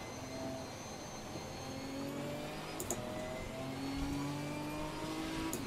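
Rain patters on a car's windscreen.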